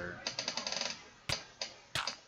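A block thuds softly into place.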